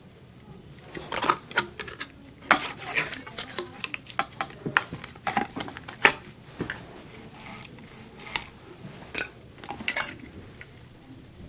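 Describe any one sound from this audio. Plastic and metal parts clatter and knock as a motor housing is taken apart.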